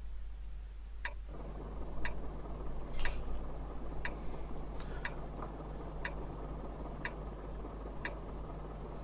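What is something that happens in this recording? A countdown clock ticks once a second.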